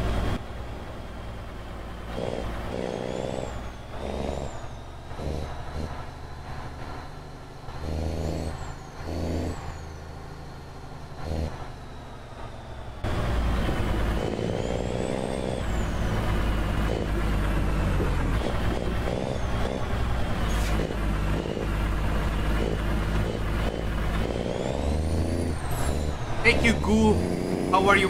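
A truck engine hums steadily, growing louder partway through.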